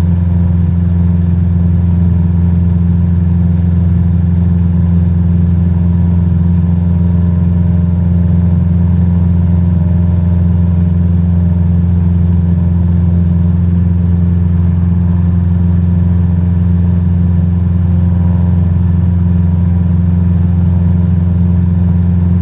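A small propeller plane's engine drones steadily and loudly.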